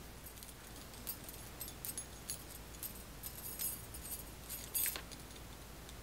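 Bead bracelets clink lightly on a wrist.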